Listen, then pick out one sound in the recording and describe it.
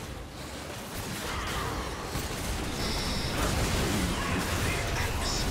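Video game spells and attacks crackle and blast in a battle.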